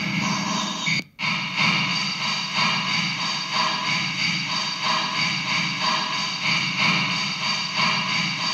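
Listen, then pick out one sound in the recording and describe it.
A rhythmic electronic sound pulses steadily through speakers.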